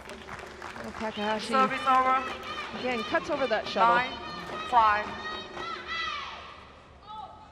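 A crowd cheers and chants in a large indoor hall.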